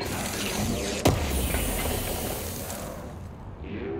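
A wooden crate smashes apart with a loud crack and clatter.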